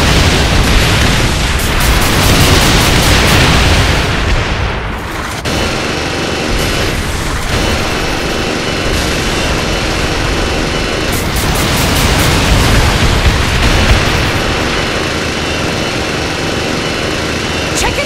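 Machine guns fire in rapid bursts.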